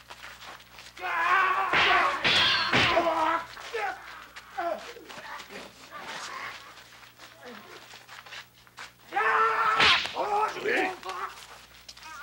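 Several men shout and yell in a brawl.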